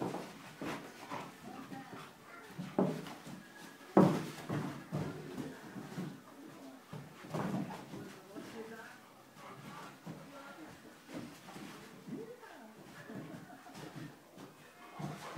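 Two dogs growl and snarl as they play-fight.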